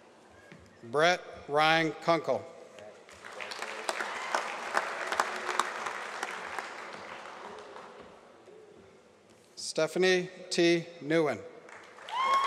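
A man reads out names through a loudspeaker in a large echoing hall.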